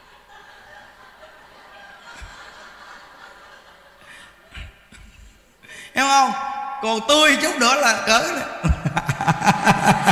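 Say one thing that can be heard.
Several men laugh softly.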